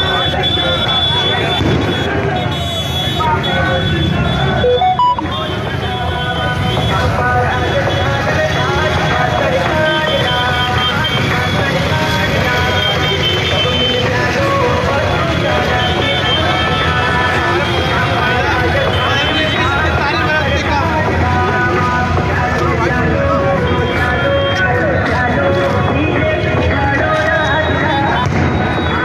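A large crowd of men chants and shouts loudly outdoors.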